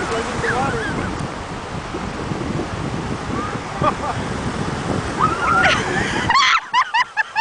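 Young girls call out and shriek with excitement nearby.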